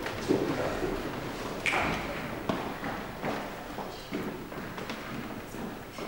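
A young man speaks from a stage in an echoing hall.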